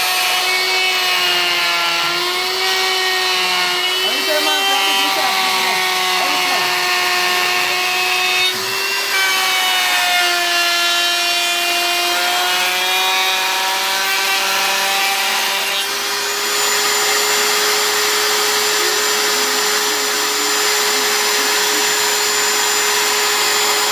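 A router whines loudly and steadily as it cuts into wood.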